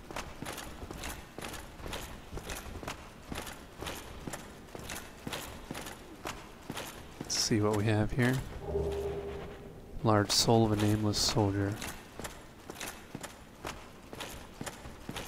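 Armored footsteps clank steadily on a stone floor.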